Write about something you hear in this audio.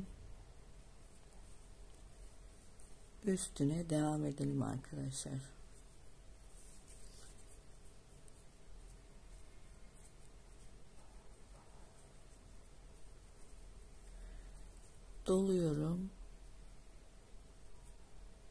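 A crochet hook softly scrapes and pulls through coarse twine.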